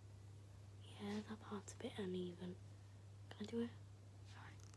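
A young girl speaks softly and close by.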